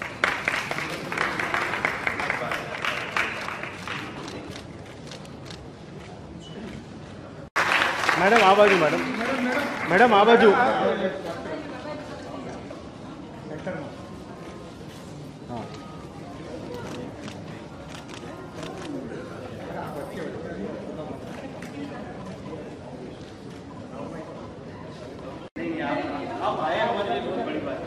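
Men and women chatter and laugh nearby.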